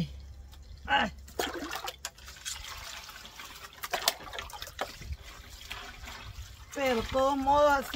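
A plastic bowl scrapes and knocks against wet fish.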